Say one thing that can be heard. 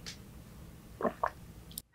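A young woman murmurs briefly close to a microphone.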